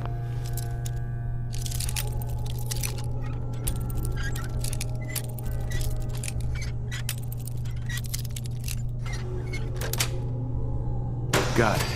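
A metal pin scrapes and clicks inside a lock.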